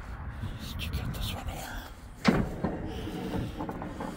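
A metal dumpster lid clanks shut.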